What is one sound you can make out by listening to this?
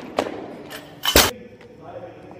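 A heavy barbell crashes onto a rubber floor with a loud thud and clang.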